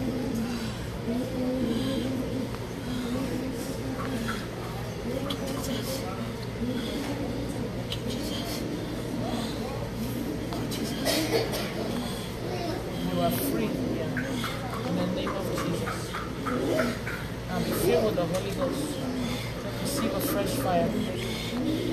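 A young woman cries and sobs close by.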